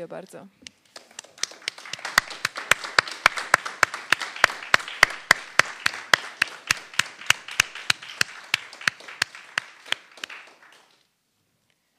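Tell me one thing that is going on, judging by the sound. A woman claps her hands along with applause.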